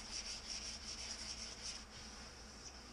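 A thin metal panel rattles and flexes as it is handled.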